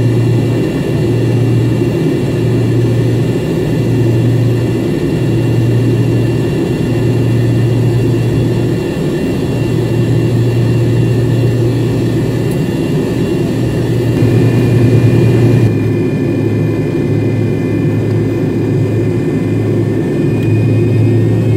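Airliner tyres rumble over the taxiway.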